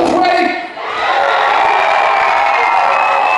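A crowd cheers and shouts.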